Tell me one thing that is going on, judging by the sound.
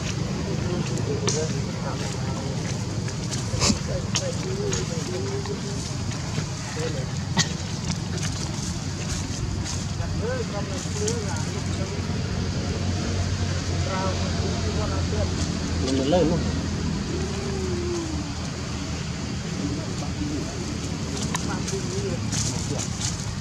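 Young monkeys squeak and chatter close by.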